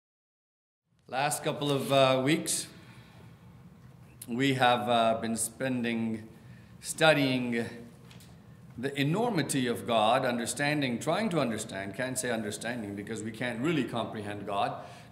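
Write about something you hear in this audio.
A middle-aged man speaks calmly into a microphone in a large, slightly echoing room.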